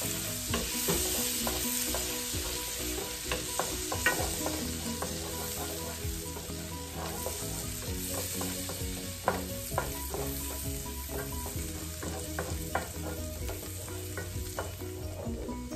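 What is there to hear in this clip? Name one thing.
A wooden spoon scrapes and taps against a pan.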